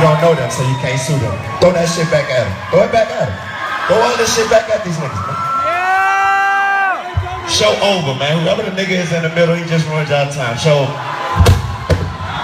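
A man raps loudly through a microphone over booming music.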